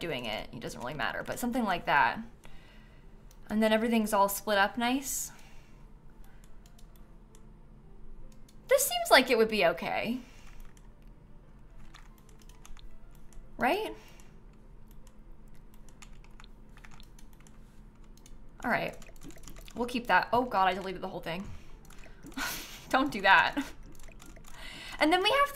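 A young woman talks with animation close to a microphone, pausing often.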